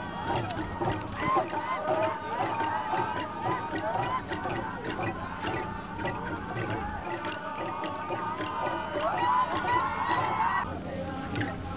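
A group of men sing and chant together loudly outdoors.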